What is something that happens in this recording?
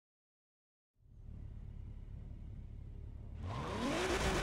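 Racing car engines idle with a low rumble.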